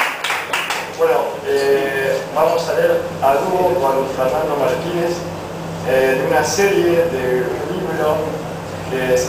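An acoustic guitar is strummed.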